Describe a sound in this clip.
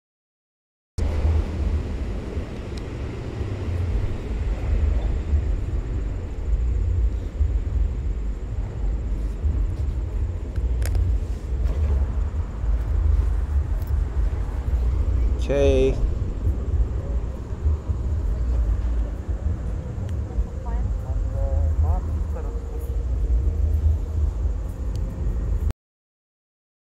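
Wind rumbles steadily against a microphone outdoors.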